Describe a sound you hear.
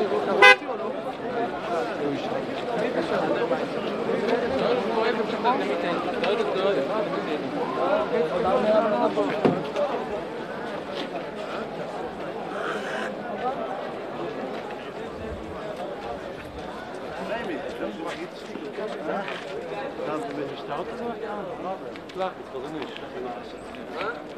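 A crowd of men talks and shouts outdoors, close by.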